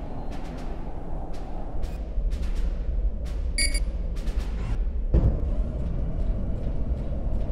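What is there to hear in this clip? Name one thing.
Blasts and impacts crack sharply through the battle.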